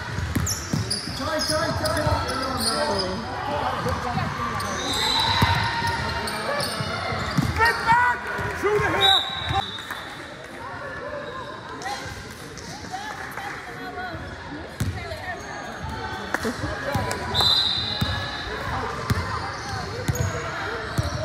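Players and spectators shout and call out in a large echoing gym.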